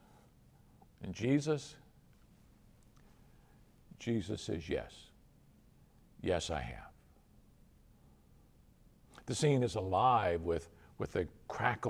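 An older man speaks calmly and slowly into a close microphone, with pauses between phrases.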